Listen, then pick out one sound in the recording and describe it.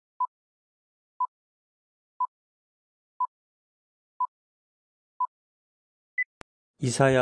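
A short high beep sounds once every second, then a higher beep.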